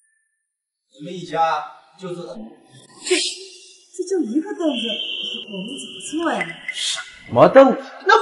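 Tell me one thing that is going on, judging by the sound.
A middle-aged woman speaks nearby with emotion.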